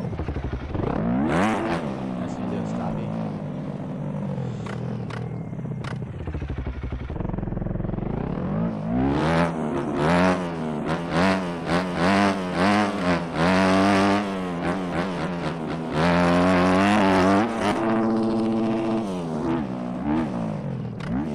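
A dirt bike engine revs up and down loudly.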